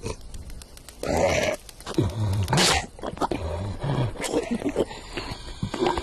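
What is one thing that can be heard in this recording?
A cartoon lion gulps and chokes with a mouthful.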